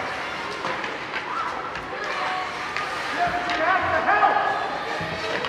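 Skates scrape and carve across the ice in a large echoing rink.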